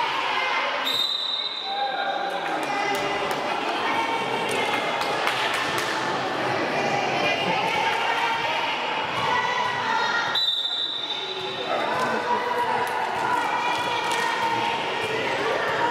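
Children's voices shout and cheer across a large echoing hall.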